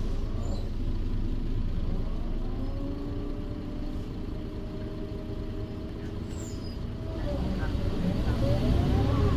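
A bus rumbles and rattles over the road.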